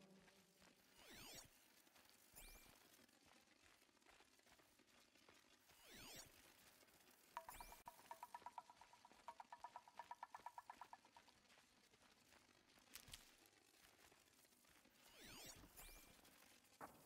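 A shimmering electronic whoosh sweeps by.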